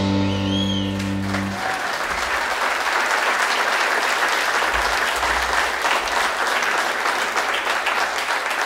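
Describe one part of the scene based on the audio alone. A drum kit plays with cymbals crashing.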